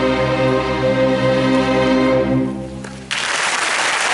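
An orchestra holds a final loud chord that quickly fades out.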